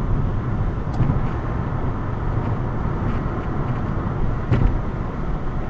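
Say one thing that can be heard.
Tyres thump over bumps in the road.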